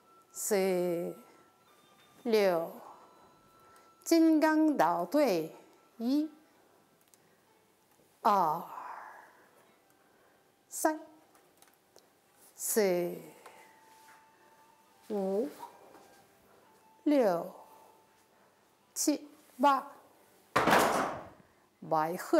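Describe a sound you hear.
An older woman calls out a count in short, loud bursts, heard close through a microphone.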